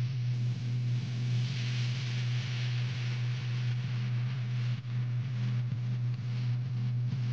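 A vehicle engine hums steadily up close.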